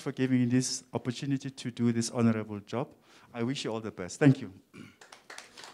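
A man speaks clearly into a microphone.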